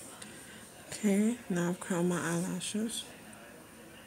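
A young woman speaks briefly, close to the microphone.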